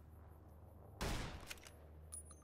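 A gun fires a single shot.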